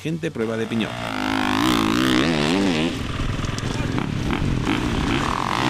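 A motorcycle engine revs loudly.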